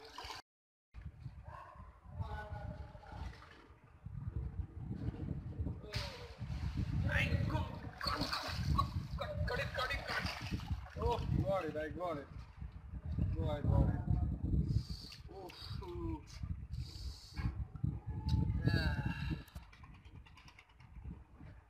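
Water sloshes and splashes as a young man wades through it.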